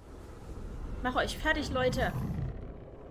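A young woman speaks with emotion close by.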